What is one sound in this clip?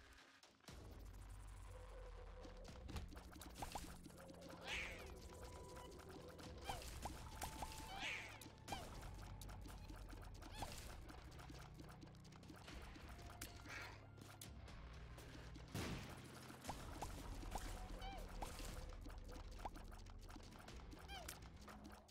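Small watery shots pop and splat again and again.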